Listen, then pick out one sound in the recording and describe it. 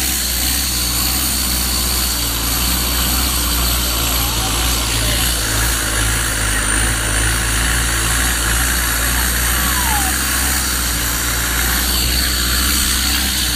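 Water rushes and splashes along the side of a boat.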